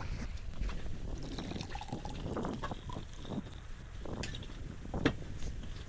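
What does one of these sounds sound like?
Wine glugs as it is poured from a bottle into a glass.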